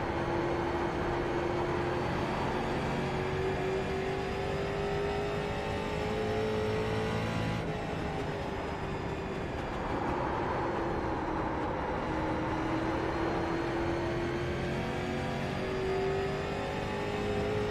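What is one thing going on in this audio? A race car engine roars steadily, its pitch rising and falling as the car speeds around the track.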